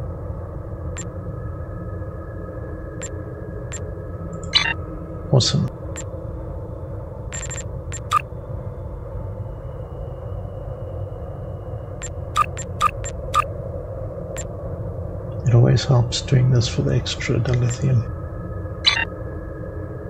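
Short game menu clicks and blips sound now and then.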